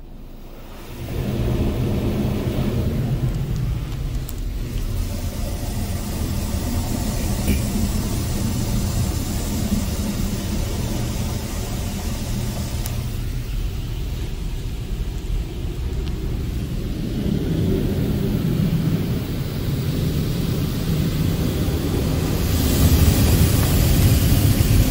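Water sprays and drums on a car, heard from inside.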